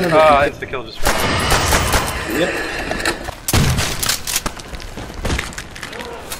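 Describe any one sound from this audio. Shotgun blasts boom with a short echo.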